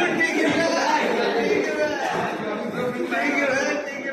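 Children chatter and shout excitedly nearby.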